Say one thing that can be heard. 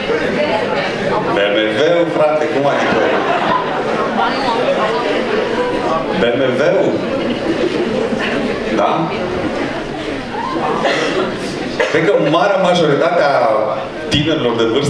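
A man speaks with animation through a microphone and loudspeakers in an echoing room.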